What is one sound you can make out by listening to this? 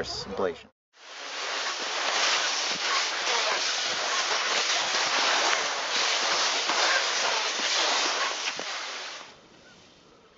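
Skis swish and scrape steadily over snow.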